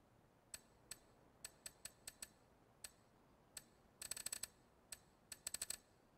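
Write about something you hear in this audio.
Short electronic menu clicks tick in quick bursts.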